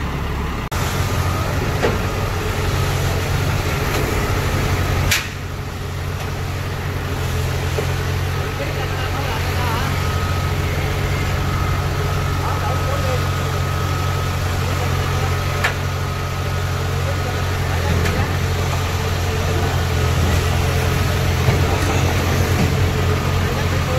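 A heavy diesel engine rumbles steadily close by.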